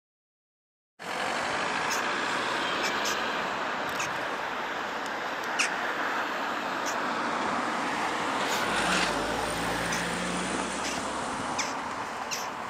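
A vintage diesel bus idles.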